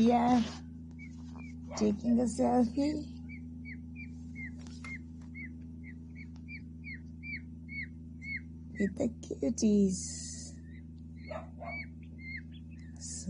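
Chicks peep softly and repeatedly.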